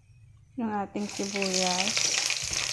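Onions sizzle loudly in hot oil.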